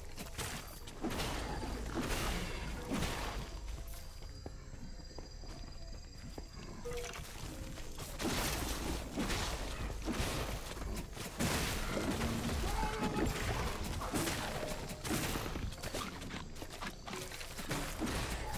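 Weapons strike monsters with repeated sharp hits and magic blasts.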